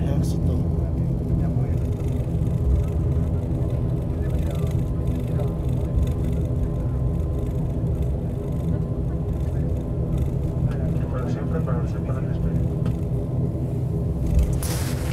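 Jet engines hum and drone steadily from inside a taxiing airliner.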